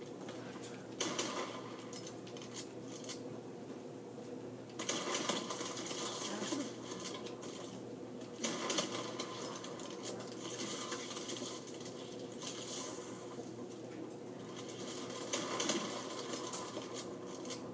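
Gunshots from a video game boom through a television's speakers.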